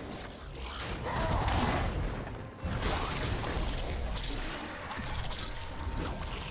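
Magic spells whoosh and crackle during a video game fight.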